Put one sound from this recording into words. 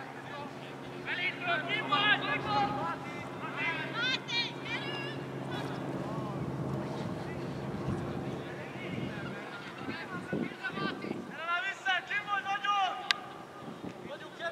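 Young men shout to each other from a distance outdoors.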